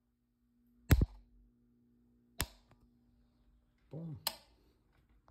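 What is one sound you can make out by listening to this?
A relay clicks sharply several times.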